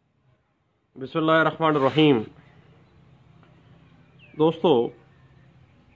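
A man speaks calmly and close to the microphone.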